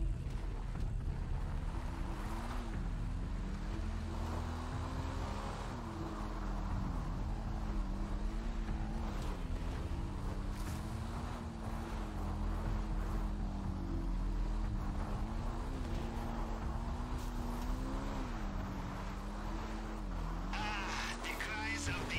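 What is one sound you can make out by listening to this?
A motorbike engine hums and revs up and down.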